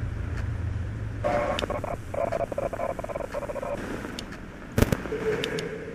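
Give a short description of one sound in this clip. Electronic static hisses and crackles.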